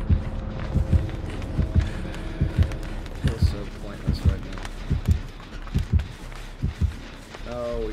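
Heavy footsteps thud quickly on the ground.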